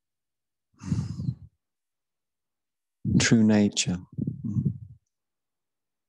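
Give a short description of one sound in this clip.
A man speaks calmly into a microphone, heard as over an online call.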